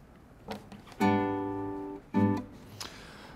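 A man plucks a few notes on an acoustic guitar.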